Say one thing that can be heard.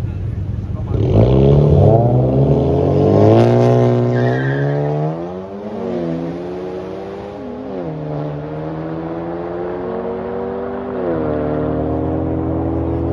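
Two race cars launch and their engines roar, rising in pitch as they shift through the gears and speed away.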